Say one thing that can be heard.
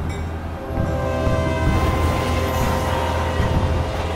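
A train rushes past.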